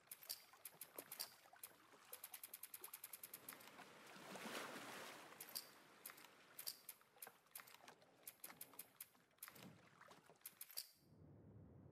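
Soft menu clicks tick in quick runs.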